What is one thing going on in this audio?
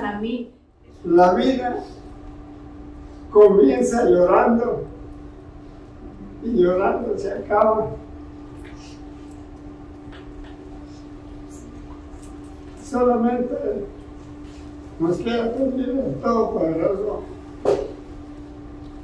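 An elderly man speaks haltingly with emotion, close by, with long pauses.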